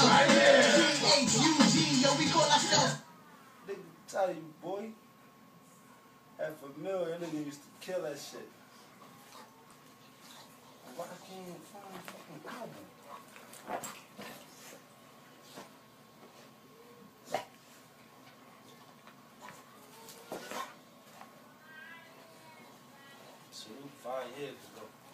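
Two dogs growl and grumble as they play-fight up close.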